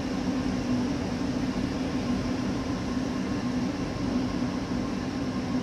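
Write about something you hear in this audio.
An electric train hums steadily as it rolls along the tracks.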